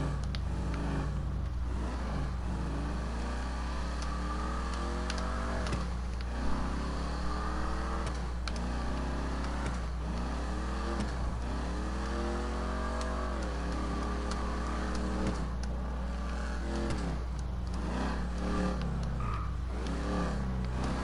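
A car engine revs up repeatedly, rising in pitch and dropping with each gear change.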